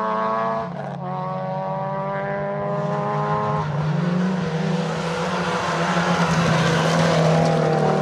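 Another rally car engine roars and grows louder as the car approaches.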